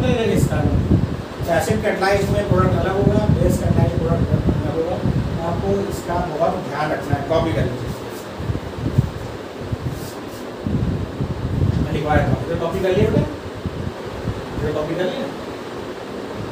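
A man lectures in a raised voice, close by.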